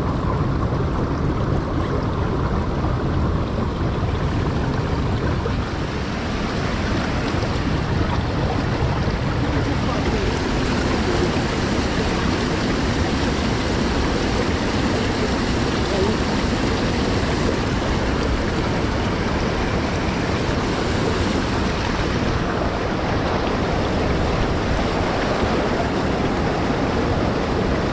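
River water rushes loudly over rocks nearby.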